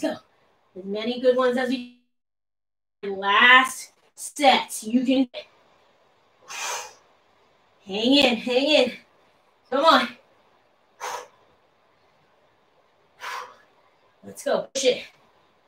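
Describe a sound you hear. A woman speaks in short, breathy bursts close by.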